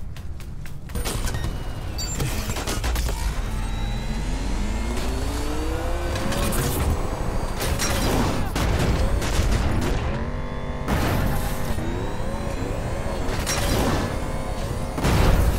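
A vehicle engine roars and revs up and down as it speeds along.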